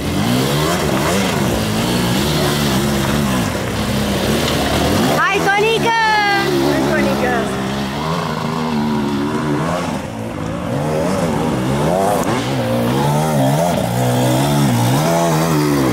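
A dirt bike engine revs and snarls as it climbs over rocks.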